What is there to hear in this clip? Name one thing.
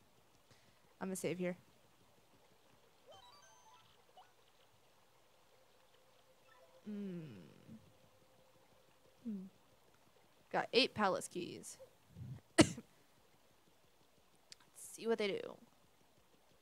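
A young woman talks casually close to a microphone.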